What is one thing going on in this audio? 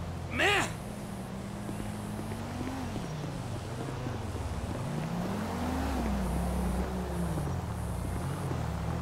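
A car engine hums and revs as a car drives past.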